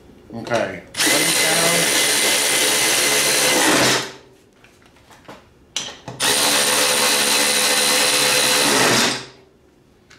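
A cordless ratchet whirs in short bursts as it spins a nut.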